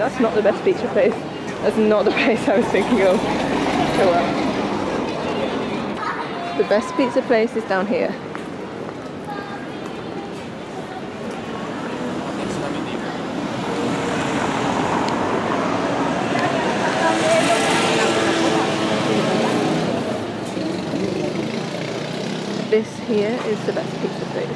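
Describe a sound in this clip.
Men and women chat nearby as they walk.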